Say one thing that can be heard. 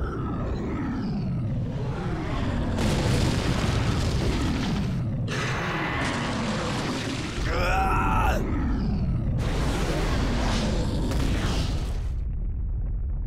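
Fire roars in loud blasts.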